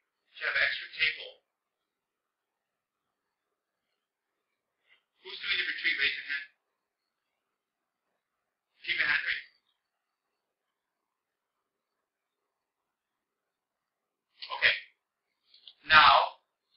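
A man speaks calmly into a microphone in short phrases with long silences between them.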